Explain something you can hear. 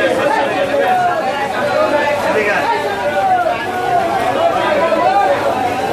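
Many people talk loudly at once nearby.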